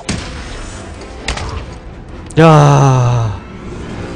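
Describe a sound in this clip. Punches and blows land in a brawl.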